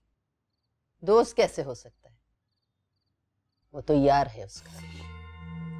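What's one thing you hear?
An older woman speaks calmly and quietly, close by.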